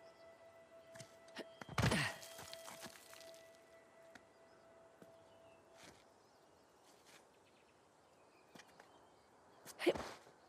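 Hands grab and scrape against stone ledges.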